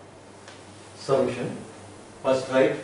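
A man speaks calmly and nearby.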